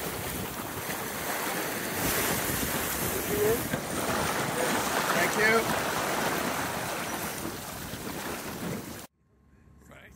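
Spray from a bow wave splashes and rushes.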